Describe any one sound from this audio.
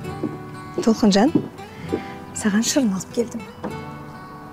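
A woman speaks warmly, close by.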